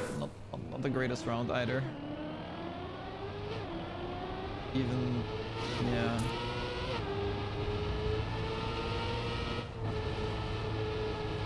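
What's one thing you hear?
A racing car engine whines steadily, rising and falling in pitch as it speeds up.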